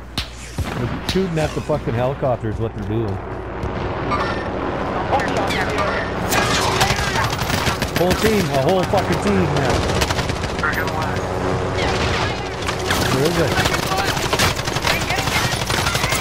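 Rapid gunshots crack in quick bursts.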